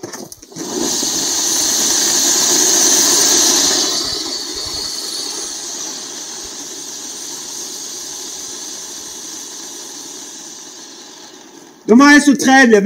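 A firework fountain hisses and crackles loudly, then slowly dies down.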